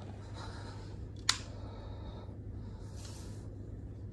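Sheets of paper rustle as a hand picks them up and slides them.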